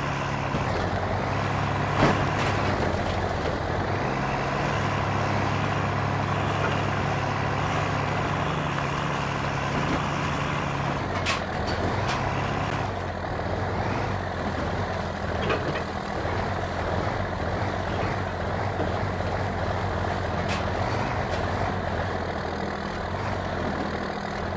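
An engine revs and hums steadily, rising and falling in pitch.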